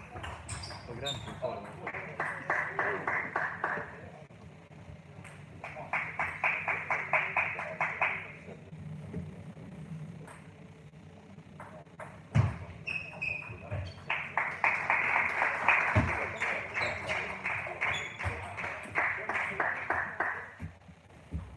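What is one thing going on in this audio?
Table tennis balls click rapidly back and forth on a table and paddles in a large echoing hall.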